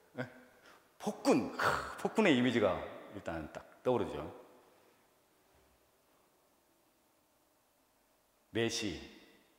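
A man speaks with animation into a microphone, in a reverberant room.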